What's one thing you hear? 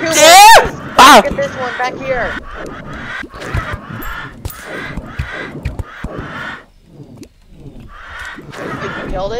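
Video game magic bolts zap and whoosh repeatedly.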